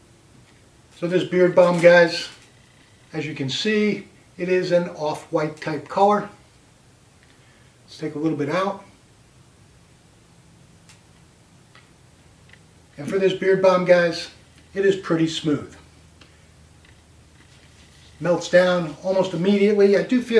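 A man speaks calmly and close up, with pauses.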